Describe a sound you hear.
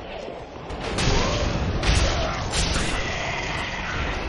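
Swords clash and slash with sharp metallic hits.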